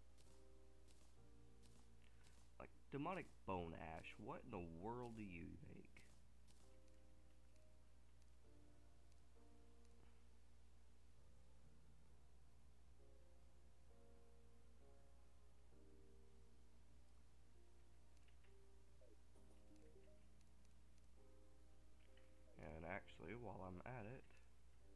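Soft game music plays a gentle, plucked melody.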